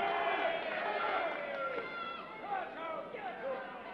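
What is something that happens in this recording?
A wrestler's body thuds onto the ring mat.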